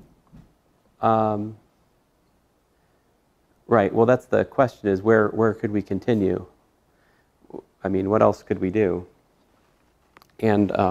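A man lectures calmly through a microphone, with pauses.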